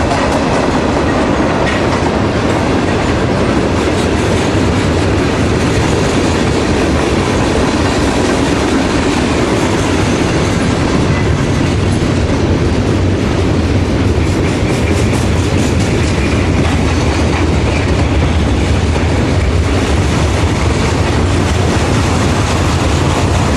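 Steel wheels clatter rhythmically over rail joints.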